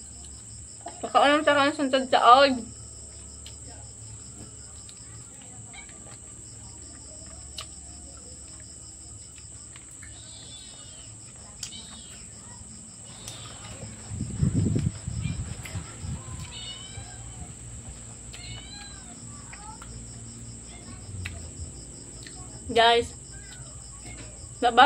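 A young woman chews food with soft smacking lips.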